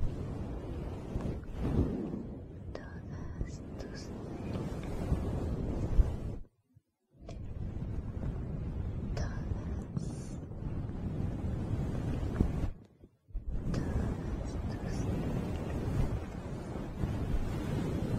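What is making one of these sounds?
A young woman whispers softly, close to a microphone.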